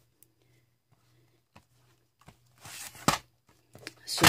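Cardboard boxes slide and knock on a table.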